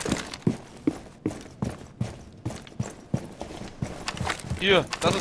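Footsteps tread quickly across a hard floor.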